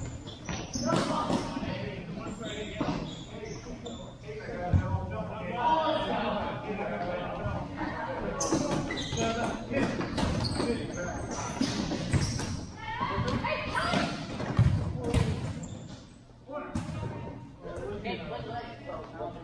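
Shoes squeak on a hard indoor court.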